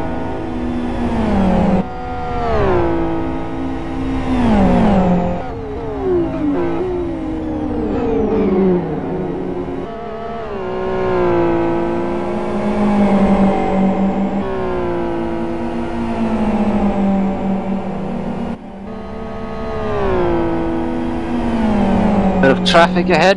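Racing car engines roar loudly, rising and falling in pitch as the cars shift gears and pass by.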